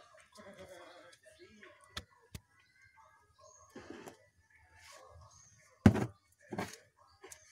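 Pages of a book rustle and flap as a young boy leafs through it.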